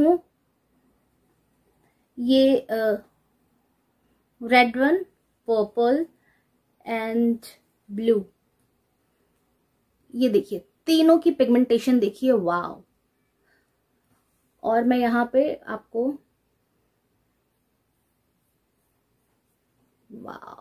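A woman speaks calmly and close to the microphone, in short phrases with pauses.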